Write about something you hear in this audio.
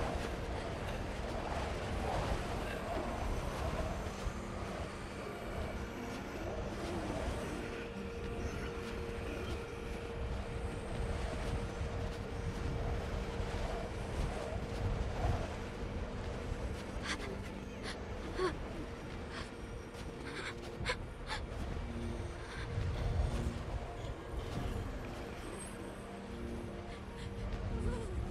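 Wind howls steadily through a snowstorm.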